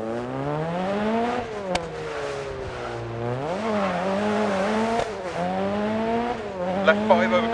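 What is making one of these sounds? A car engine revs up and down through gear changes.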